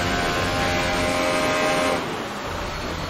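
A Formula One car's turbocharged V6 engine screams at high revs.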